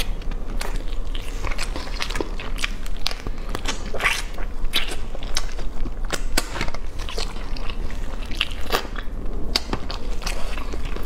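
A young woman chews and slurps food noisily close to a microphone.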